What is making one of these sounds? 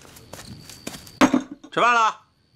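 A bowl knocks down onto a wooden table.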